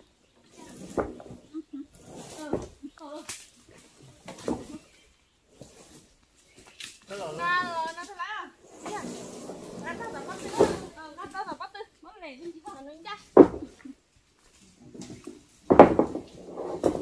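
A wooden log knocks and thuds against the ground.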